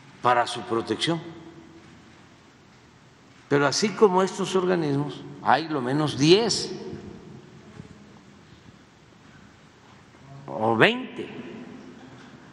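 An elderly man speaks slowly and calmly into a microphone in a large echoing hall.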